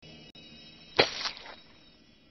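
A body thuds onto the floor.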